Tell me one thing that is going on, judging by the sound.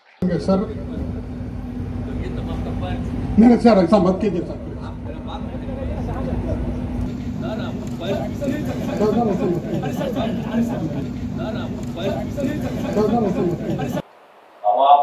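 Several men talk over one another amid a noisy crowd.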